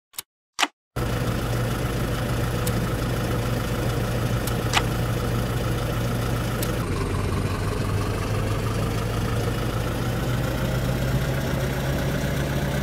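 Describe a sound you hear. A bus engine rumbles.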